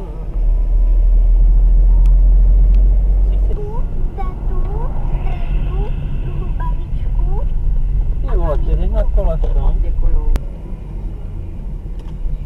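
A car engine hums steadily with tyre rumble on the road.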